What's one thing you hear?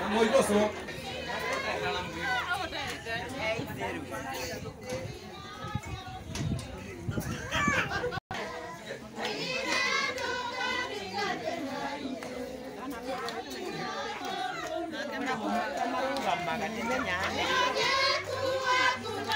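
Several adults and children talk and chatter outdoors at once.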